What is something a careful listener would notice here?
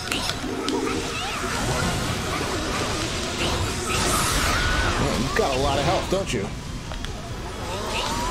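Magic blasts burst with a loud whoosh.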